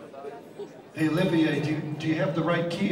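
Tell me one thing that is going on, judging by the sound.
A band starts playing with drums, bass and electric guitars.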